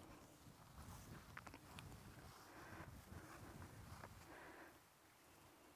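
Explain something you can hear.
Wind rumbles against a microphone.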